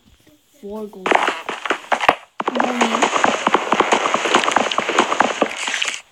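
Wooden blocks crack and break in a game.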